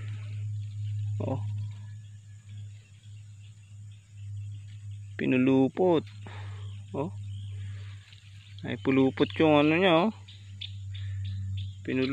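Wet reed stems rustle and swish in shallow water as a hand pulls at them.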